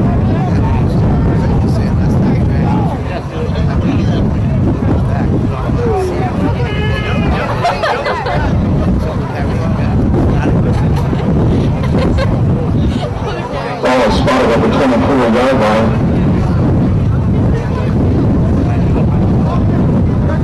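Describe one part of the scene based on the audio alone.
A crowd of spectators talks and shouts outdoors.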